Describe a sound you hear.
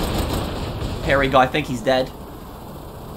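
A boy speaks with animation close to a microphone.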